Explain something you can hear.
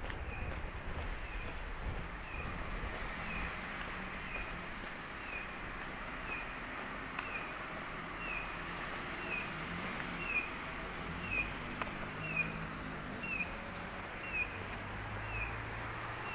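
Cars hum by in the distance.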